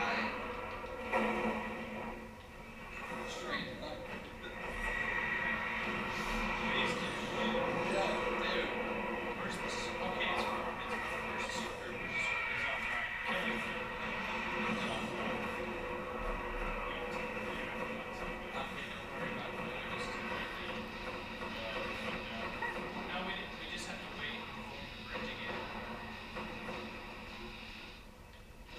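Young men talk and react over a microphone.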